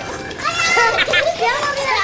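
A young boy laughs close by.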